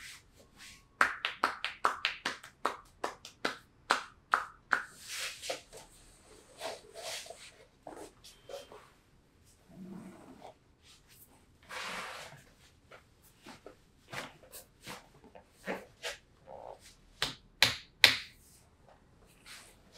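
Palms slap sharply on a leg.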